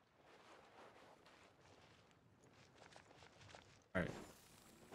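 Quick footsteps run across dirt.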